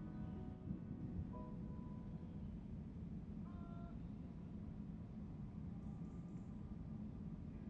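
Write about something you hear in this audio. A piano plays a few soft, sparse notes.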